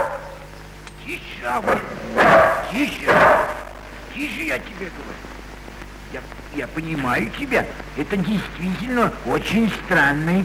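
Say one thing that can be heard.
An elderly man speaks nearby.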